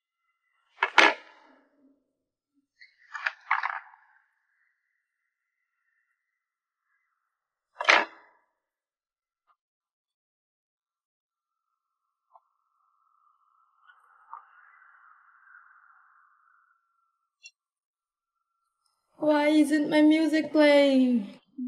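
A young woman speaks close by, in short bursts.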